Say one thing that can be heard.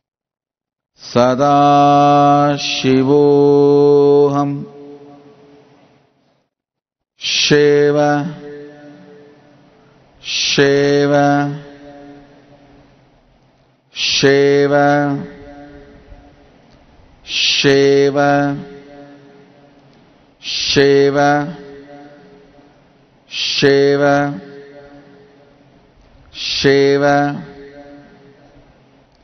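A man chants long, steady notes into a microphone, one phrase at a time with pauses between.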